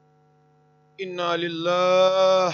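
A man begins to sing loudly through a microphone.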